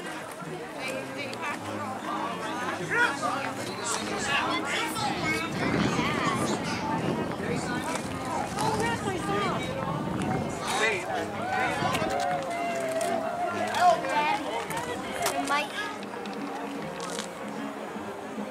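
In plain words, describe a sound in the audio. A crowd of adults and children chatter nearby outdoors.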